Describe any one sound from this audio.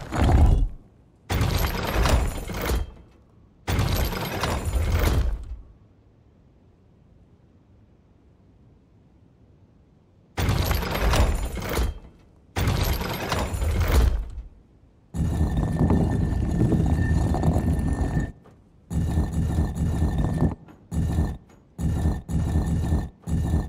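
A heavy stone dial grinds and rumbles as it turns, in repeated bursts.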